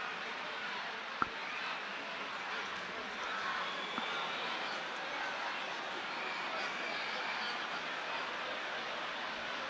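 Men talk among themselves close by.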